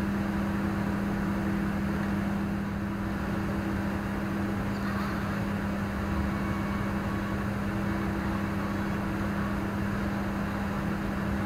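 The electric motor and gears of a radio-controlled rock crawler whine as it climbs slowly.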